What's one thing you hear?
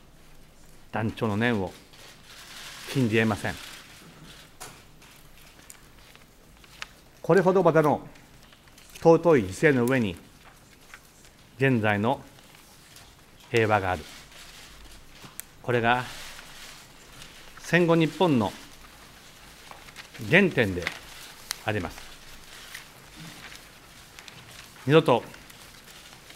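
A middle-aged man speaks slowly and formally into a microphone, with long pauses between phrases.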